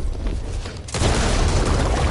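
A gun fires a loud blast with a booming explosion.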